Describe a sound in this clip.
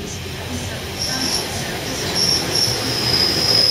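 Train wheels squeal high on the rails.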